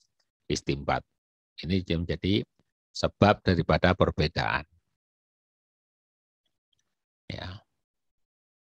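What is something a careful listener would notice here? A middle-aged man speaks calmly into a microphone, heard as if through an online call, in short phrases with pauses.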